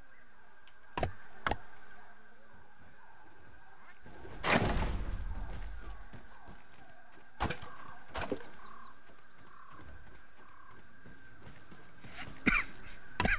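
Building pieces snap into place with short, sharp knocks.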